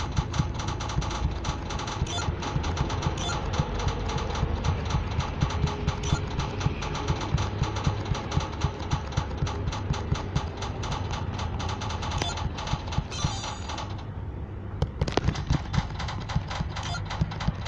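A pinball bounces off bumpers with short knocks.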